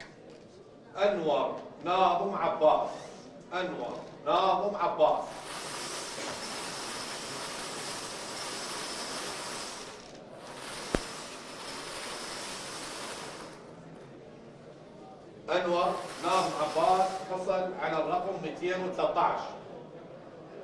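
A man reads out through a microphone.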